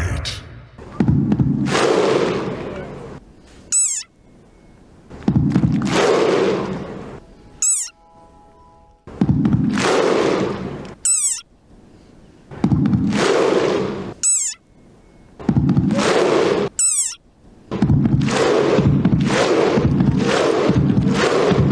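A huge outdoor crowd gives loud, deep shouts in unison, in a slow rhythm.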